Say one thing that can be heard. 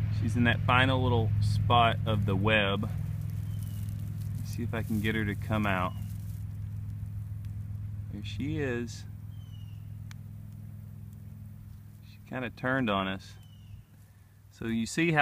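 A stick rustles and scrapes through dry grass.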